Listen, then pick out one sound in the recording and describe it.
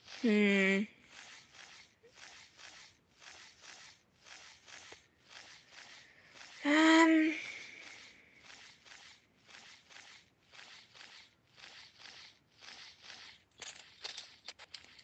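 Large wings flap in a steady, even rhythm.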